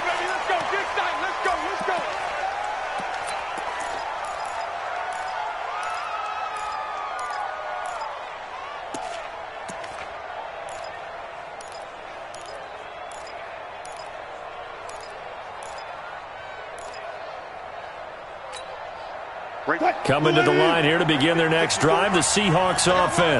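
A large stadium crowd murmurs and cheers steadily.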